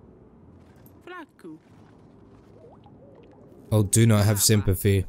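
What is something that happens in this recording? A young man speaks into a close microphone, briefly at first and then with animation.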